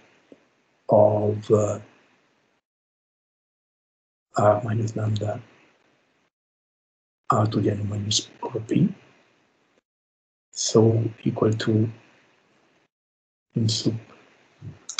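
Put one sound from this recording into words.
A man speaks calmly in short phrases with pauses, heard through an online call.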